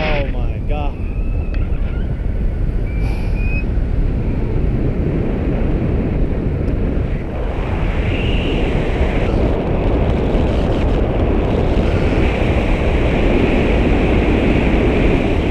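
Strong wind roars steadily past a microphone.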